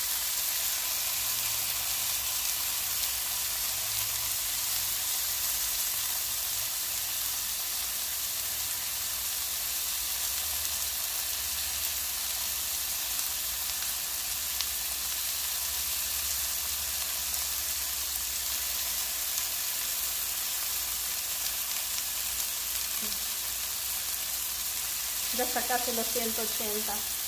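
Food sizzles and crackles in a hot frying pan.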